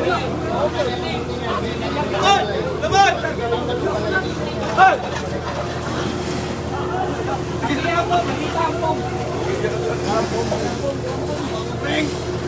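Water sprays hard from a fire hose.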